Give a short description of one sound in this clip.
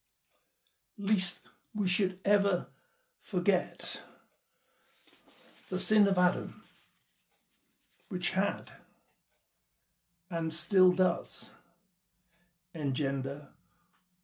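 An elderly man speaks calmly into a nearby microphone, in short phrases with pauses.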